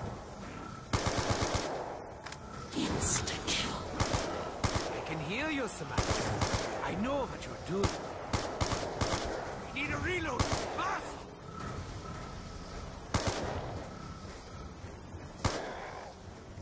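Gunfire bursts in rapid loud bangs.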